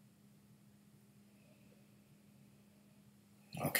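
A man sips a drink from a glass.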